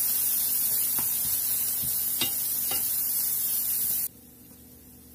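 Onions sizzle loudly in a hot frying pan.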